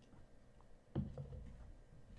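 A cup is set down with a thud.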